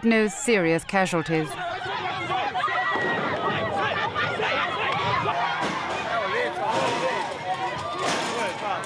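A crowd of men and women shout and clamour excitedly all around.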